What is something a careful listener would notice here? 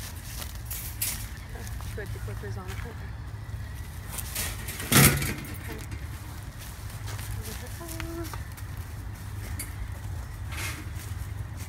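A metal cage door rattles and clanks.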